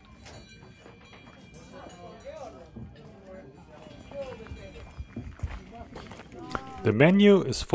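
Men and women chat quietly at a distance.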